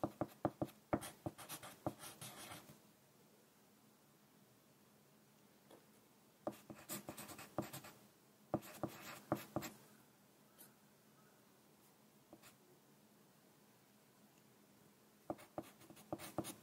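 A pencil scratches across paper in short bursts, close by.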